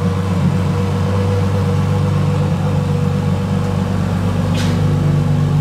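A sports car engine idles with a deep, steady rumble close by.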